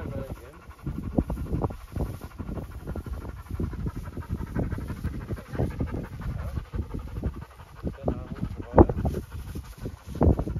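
Footsteps swish through tall dry grass.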